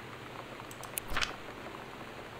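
A sheet of paper rustles briefly.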